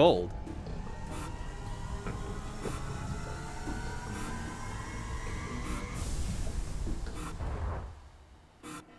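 A spaceship engine roars and rises in pitch, then cuts off.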